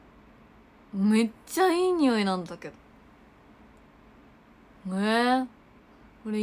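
A young woman speaks close up in short, lively bursts.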